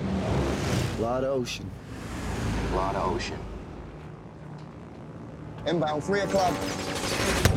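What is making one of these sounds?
A young man speaks tensely over an intercom.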